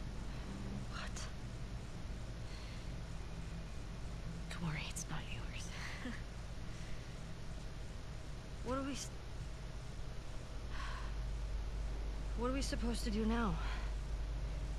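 A second young woman asks quietly.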